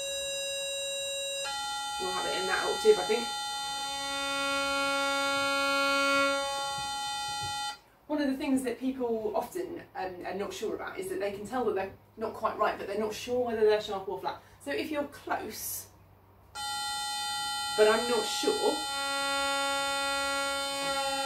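An electronic tuner sounds a steady reference tone.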